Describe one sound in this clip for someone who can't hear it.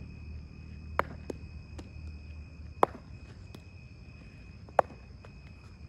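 A cricket bat sharply strikes a ball several times.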